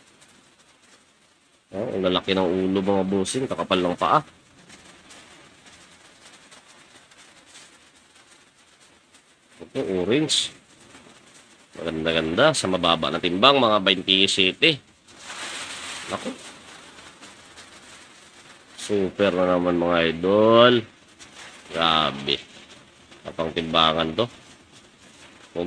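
A plastic bag crinkles as fingers handle it.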